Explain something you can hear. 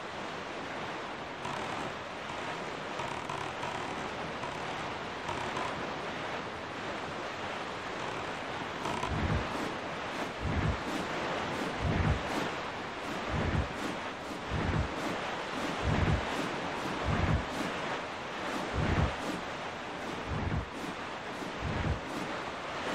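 A boat rushes steadily through water with a constant splashing hiss.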